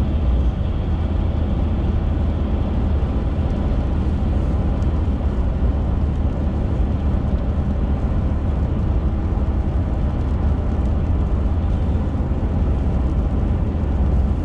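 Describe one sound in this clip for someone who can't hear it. Raindrops patter lightly on a windshield.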